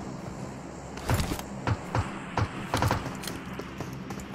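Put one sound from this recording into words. Footsteps patter quickly across a hard roof.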